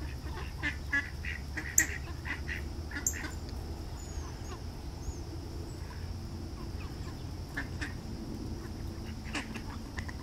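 A small bird chirps in short, sharp bursts nearby.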